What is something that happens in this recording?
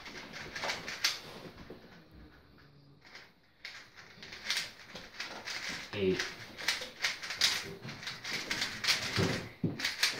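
Plastic puzzle cubes click and clatter as they are turned quickly.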